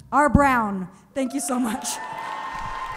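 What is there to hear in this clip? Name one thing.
A young woman speaks animatedly into a microphone.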